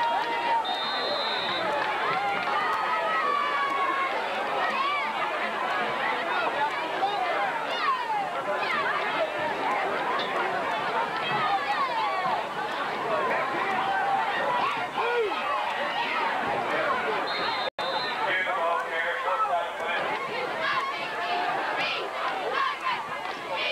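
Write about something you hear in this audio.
A crowd of spectators cheers and chatters loudly outdoors.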